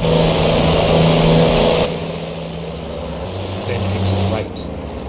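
Tyres hum on a highway.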